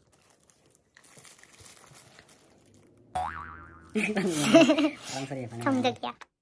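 A dog bites and chews crunchy food close by.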